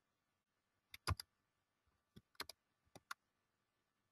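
Keyboard keys click a few times.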